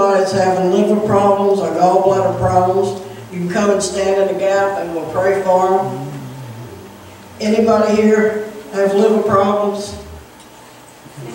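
A woman speaks with feeling into a microphone, heard through a loudspeaker in an echoing room.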